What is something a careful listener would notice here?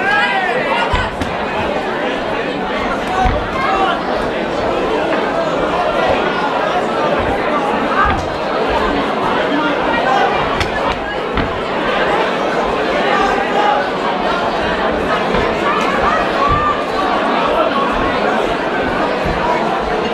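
Punches and kicks thud against bodies.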